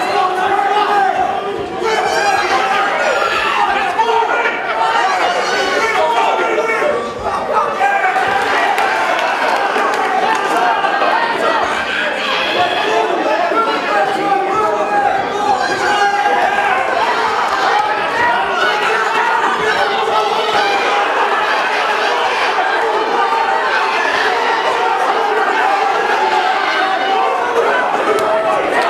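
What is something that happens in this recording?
A crowd shouts and cheers loudly in an echoing hall.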